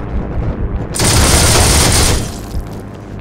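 A machine gun fires a loud, rapid burst.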